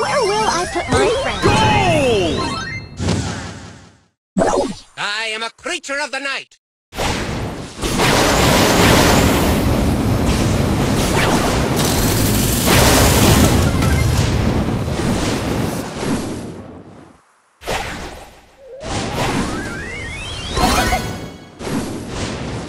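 Electronic game sound effects chirp, zap and burst in quick succession.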